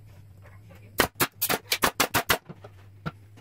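A nail gun fires several quick shots into wood.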